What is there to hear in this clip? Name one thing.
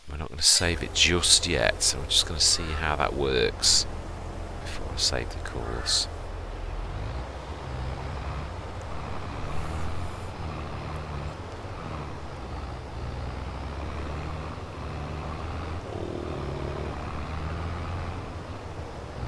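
A tractor engine drones steadily at a low pitch.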